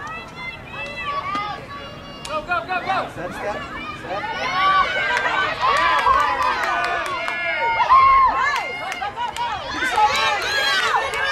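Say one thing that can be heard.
Young women shout and call out excitedly outdoors.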